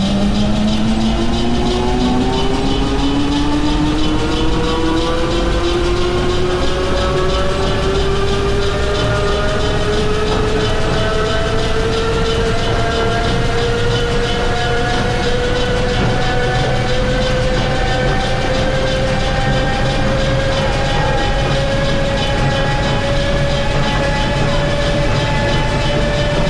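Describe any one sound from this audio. An electric train motor whines, rising steadily in pitch as the train speeds up.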